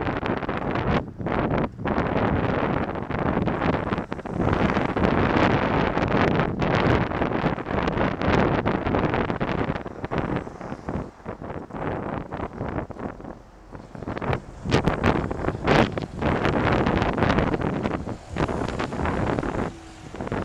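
Wind rushes loudly past a cyclist riding down a street.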